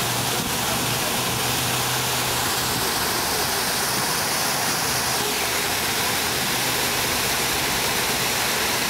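Water from a fountain splashes steadily and loudly into a basin close by.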